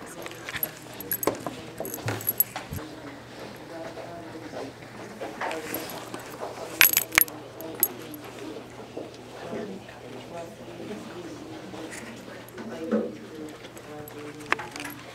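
Young men chatter in the background of a room.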